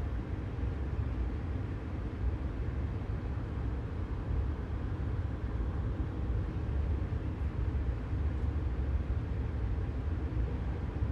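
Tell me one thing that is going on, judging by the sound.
A train rumbles steadily along the rails with a deep, low hum.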